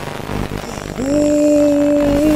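A man exclaims in surprise close by with a long drawn-out sound.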